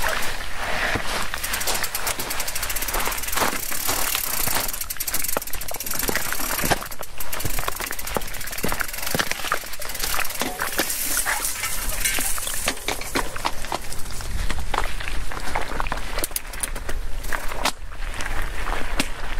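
Bicycle tyres crunch and rattle over rocks and gravel.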